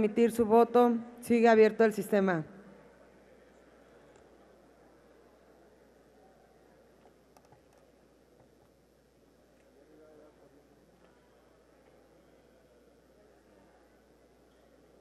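A large crowd murmurs and chatters in a large echoing hall.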